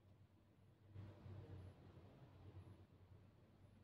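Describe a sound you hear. A chess piece is set down on a wooden board with a soft knock.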